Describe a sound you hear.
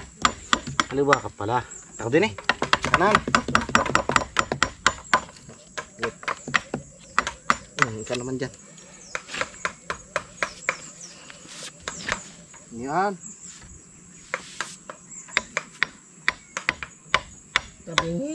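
A hammer strikes wood in quick, sharp blows.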